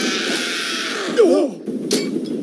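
Men shout in alarm.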